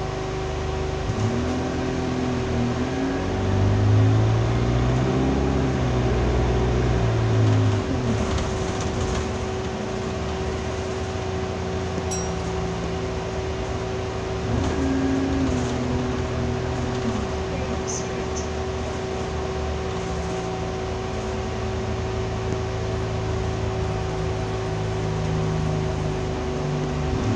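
A bus engine rumbles steadily and revs up and down.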